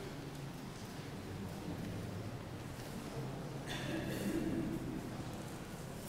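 A crowd murmurs quietly in an echoing hall.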